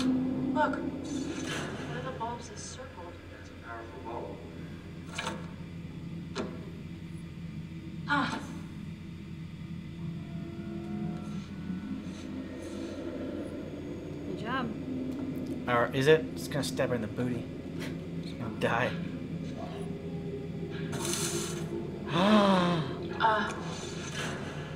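A young woman talks and reacts close to a microphone.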